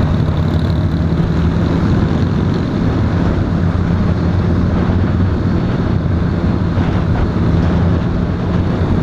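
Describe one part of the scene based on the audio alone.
A quad bike engine hums steadily up close while riding.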